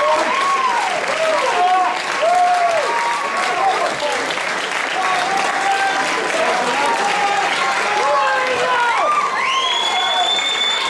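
A crowd of spectators cheers and whoops loudly.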